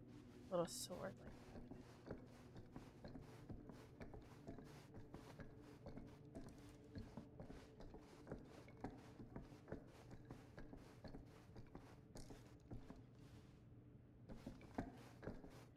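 Footsteps tap softly and evenly.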